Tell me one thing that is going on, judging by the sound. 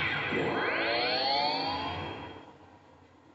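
A game's bright shimmering sound effect sweeps upward and fades.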